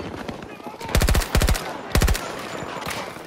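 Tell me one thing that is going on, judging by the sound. A rifle fires in short, rapid bursts close by.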